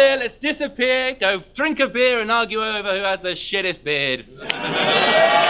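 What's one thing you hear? A young man raps loudly.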